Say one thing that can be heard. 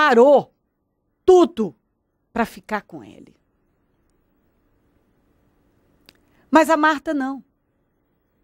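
A young woman speaks calmly into a microphone, close by, in short phrases.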